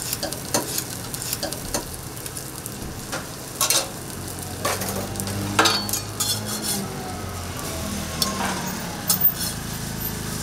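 A metal spatula scrapes and clacks against a griddle.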